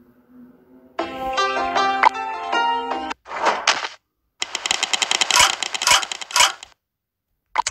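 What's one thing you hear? Game music plays a short, lively tune.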